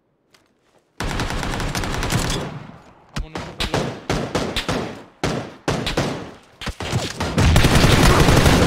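A man talks with animation into a headset microphone.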